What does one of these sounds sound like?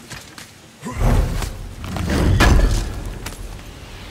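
A heavy stone lid grinds open.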